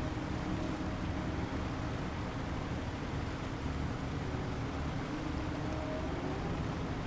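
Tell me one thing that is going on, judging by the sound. A heavy truck engine rumbles steadily as the truck drives along.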